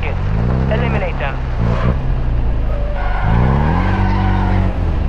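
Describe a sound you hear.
An off-road vehicle's engine idles and revs, rising and falling in pitch.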